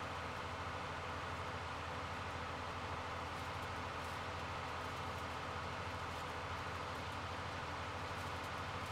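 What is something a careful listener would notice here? A hay tedder rattles as it turns the grass.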